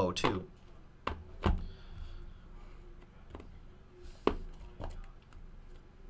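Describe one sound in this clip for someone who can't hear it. Cardboard boxes tap and knock as they are handled.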